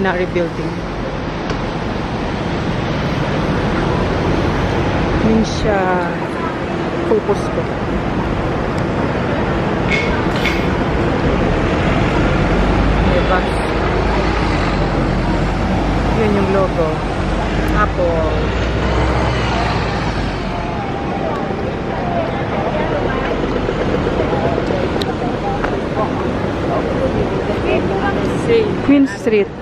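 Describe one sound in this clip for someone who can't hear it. Busy city street noise hums steadily outdoors.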